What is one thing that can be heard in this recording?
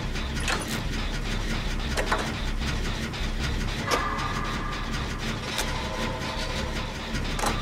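Metal parts rattle and clank on an engine being worked on.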